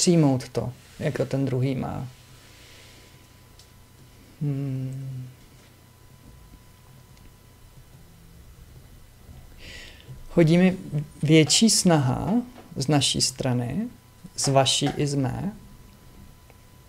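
A man speaks calmly and close into a microphone, with pauses.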